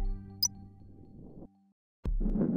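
Coins jingle as they are collected.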